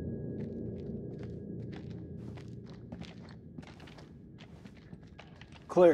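Boots step slowly on a hard floor.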